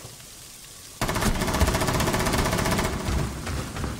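A gun fires a rapid, rattling burst of shots.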